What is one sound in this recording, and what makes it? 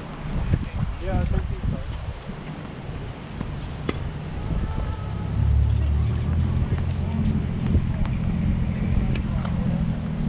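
A paddle hits a ball with sharp pops, back and forth.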